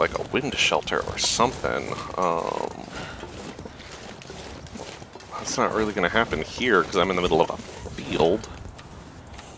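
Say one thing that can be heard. A middle-aged man talks with animation into a microphone, close by.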